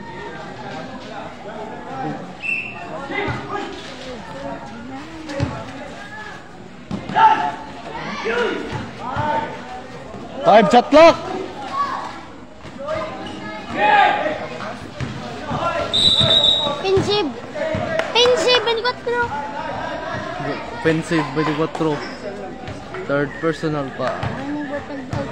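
A crowd of spectators and young men shout and cheer outdoors.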